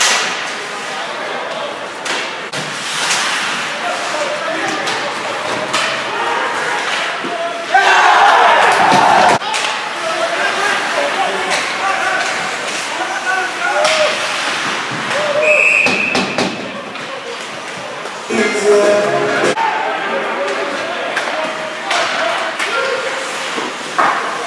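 Hockey sticks clack against a puck and each other.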